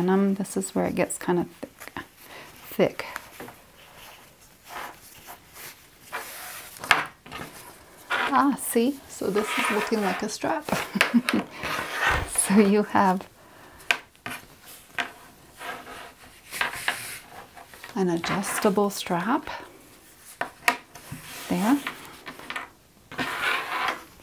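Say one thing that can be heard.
A fabric strap rustles and slides on a hard surface.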